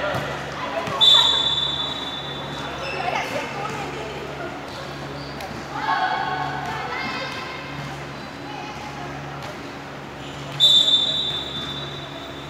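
Sneakers squeak on the hard floor.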